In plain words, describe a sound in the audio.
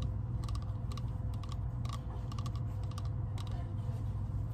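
Fingernails tap and click on a hollow ceramic pumpkin up close.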